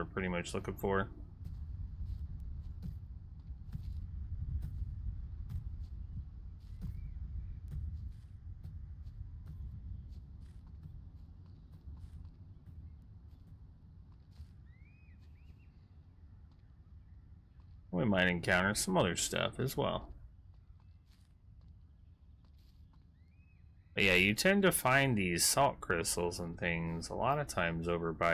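Footsteps patter quickly over sand and grass.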